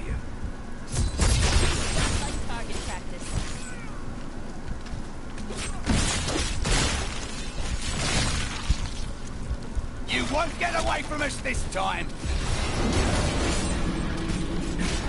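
Blades clash and clang repeatedly in a fierce fight.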